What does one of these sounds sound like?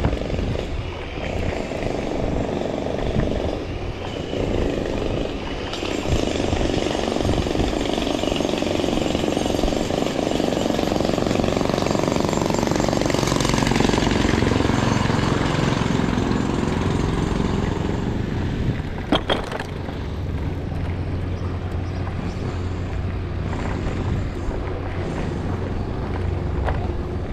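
Wind rushes and buffets loudly against the rider.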